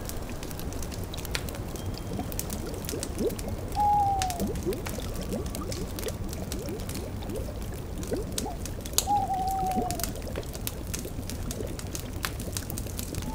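A cauldron bubbles.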